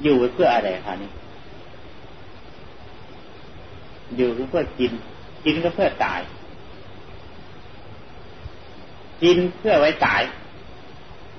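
An elderly man speaks calmly in short phrases, with long pauses between them.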